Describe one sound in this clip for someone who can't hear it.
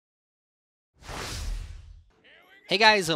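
A soft whoosh sweeps past.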